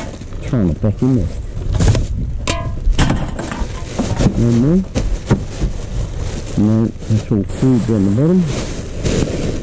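A plastic wheelie bin knocks and rattles as it is moved.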